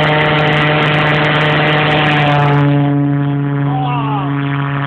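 A model jet engine whines loudly and steadily close by.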